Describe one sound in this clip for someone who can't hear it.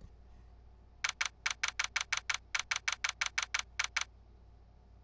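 Quick electronic beeps tick rapidly and evenly.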